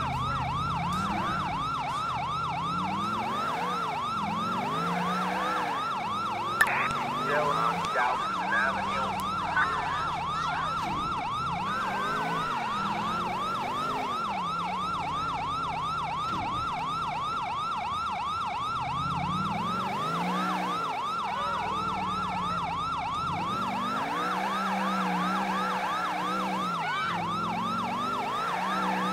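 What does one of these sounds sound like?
A car engine revs up and down as the car accelerates and slows.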